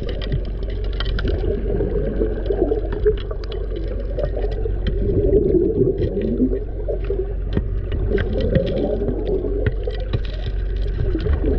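A diver's breathing gear bubbles and gurgles underwater, close by.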